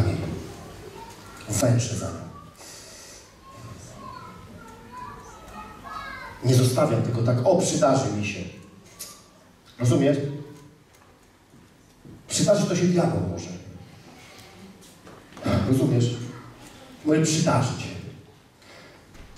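A middle-aged man speaks with animation through a headset microphone in an echoing hall.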